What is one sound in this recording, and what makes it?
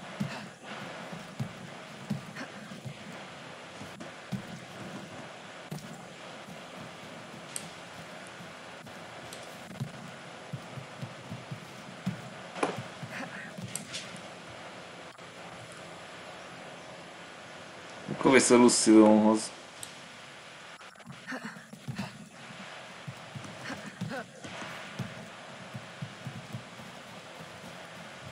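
Footsteps rustle quickly through grass and undergrowth.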